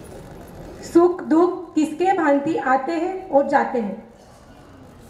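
A young woman speaks with animation into a microphone, heard over loudspeakers in a large echoing hall.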